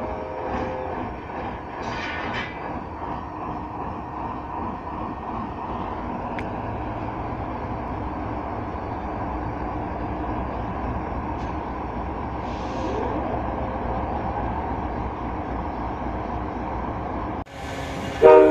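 A train's wheels clatter and squeal on the rails.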